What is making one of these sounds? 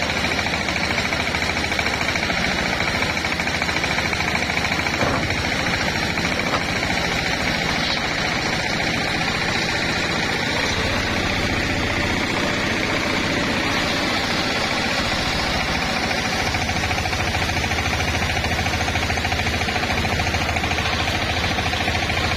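A circular saw whines loudly as it cuts through a thick wooden plank.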